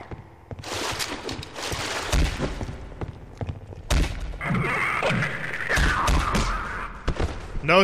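A creature groans and snarls close by.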